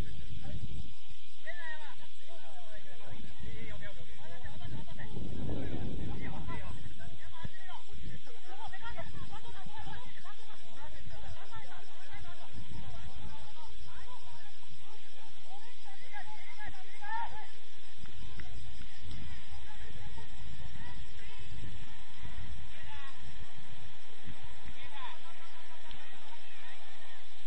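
Young players shout and call out across the field, some way off.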